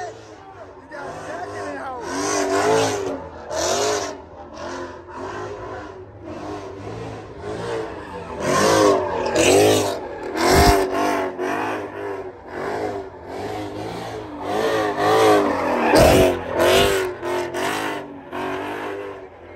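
A car engine revs hard and loud, rising and falling again and again.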